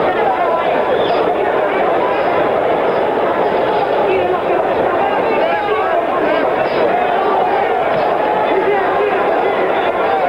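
A large crowd roars and cheers steadily in an echoing arena.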